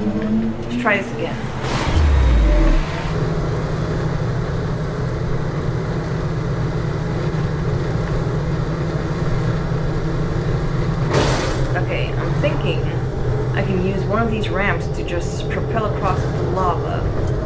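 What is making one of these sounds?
A young man talks casually close to a microphone.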